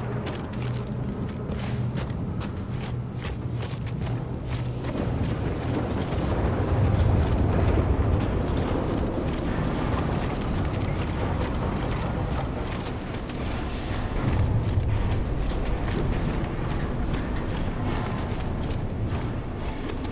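Heavy boots clank on metal grating.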